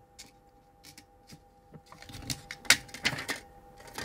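A pastry is set down on a ceramic plate with a soft tap.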